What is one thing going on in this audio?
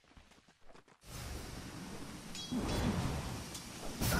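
Game spell effects and weapon hits clash in a busy fight.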